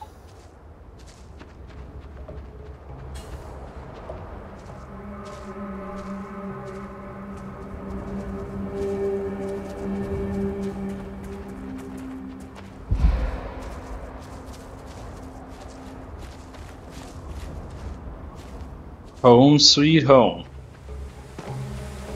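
Footsteps crunch on dry grass and gravel.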